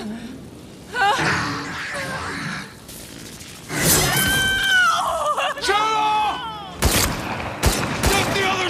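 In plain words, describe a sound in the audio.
A man shouts urgently.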